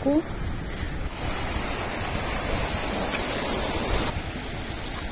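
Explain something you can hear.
A stream rushes and gurgles over stones.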